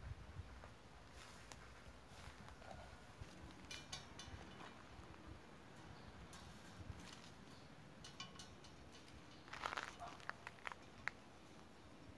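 Wire mesh clinks and rattles as it is handled.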